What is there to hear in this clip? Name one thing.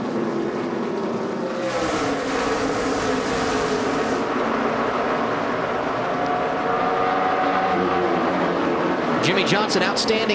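Many race car engines roar loudly at high speed.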